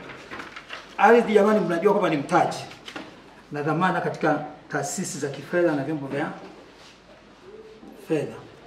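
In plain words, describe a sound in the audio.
A middle-aged man speaks into a microphone.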